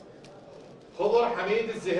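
A man speaks into a microphone, reading out.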